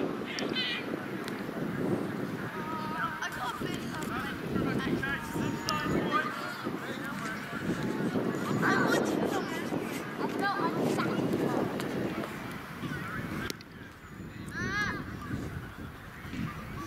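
Young men shout and call out to one another on an open field.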